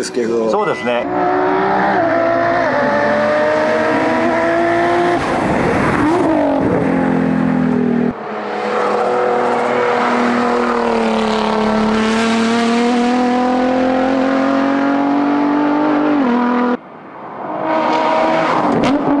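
A racing car engine roars loudly as the car speeds past, its pitch rising and falling with gear shifts.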